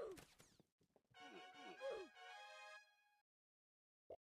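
A cheerful game jingle plays.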